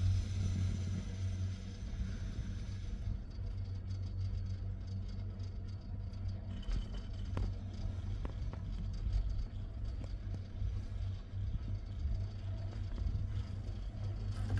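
Wind rumbles steadily outdoors.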